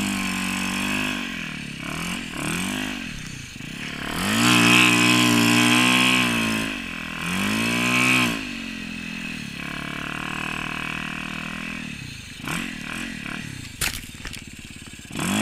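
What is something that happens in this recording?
A dirt bike engine revs hard, rising and falling in pitch.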